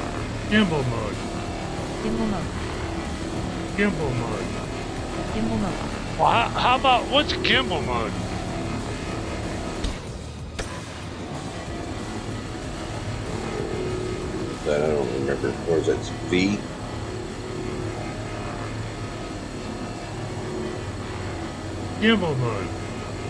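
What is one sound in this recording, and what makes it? A spacecraft's engine hums low and steadily.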